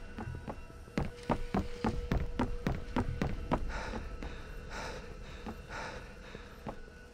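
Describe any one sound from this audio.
Footsteps clang quickly on metal stairs.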